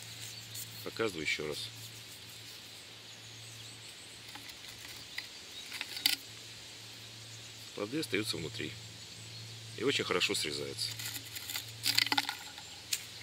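A middle-aged man speaks calmly and close by, in short bursts.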